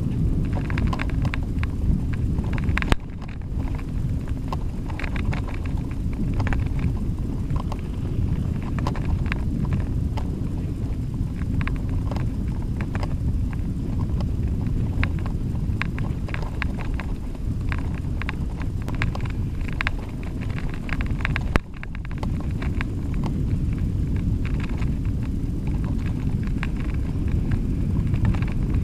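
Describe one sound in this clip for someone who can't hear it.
Bicycle tyres bump and rattle over a rough dirt track.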